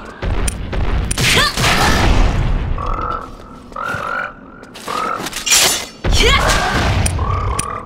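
A large beast snarls and roars.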